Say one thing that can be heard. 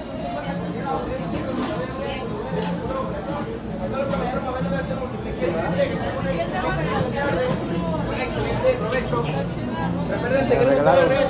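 A crowd murmurs and chatters in a busy indoor hall.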